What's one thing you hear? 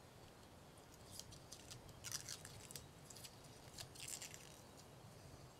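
Rubber window trim squeaks and rubs under a hand pressing along it.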